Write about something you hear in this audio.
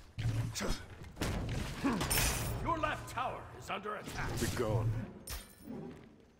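Sword strikes land with sharp hits during a fight.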